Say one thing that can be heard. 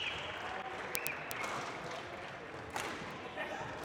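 A racket strikes a shuttlecock with sharp pops.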